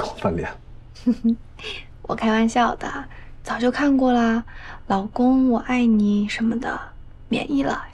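A young woman speaks playfully nearby, with a light laugh.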